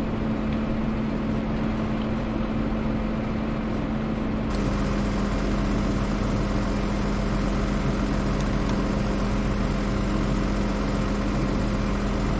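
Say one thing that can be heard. A tractor engine idles with a steady low rumble close by, growing a little louder partway through.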